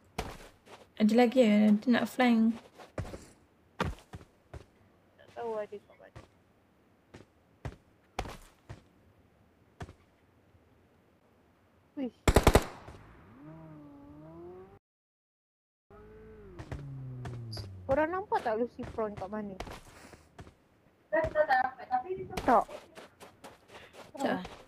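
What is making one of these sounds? A young woman talks with animation close to a microphone.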